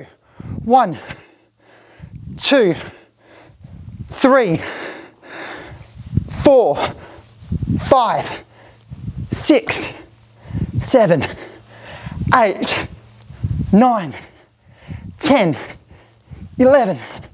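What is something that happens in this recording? A man speaks energetically into a nearby microphone.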